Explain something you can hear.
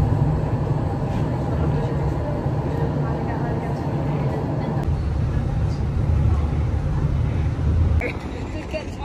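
A tram rumbles and hums steadily while riding.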